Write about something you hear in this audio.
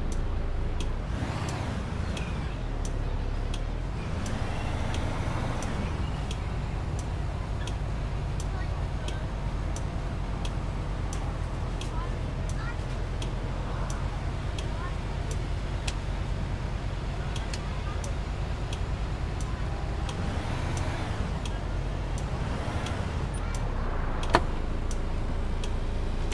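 A school bus engine rumbles while driving.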